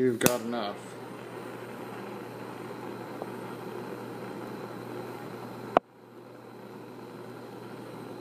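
A gas torch hisses with a steady roar.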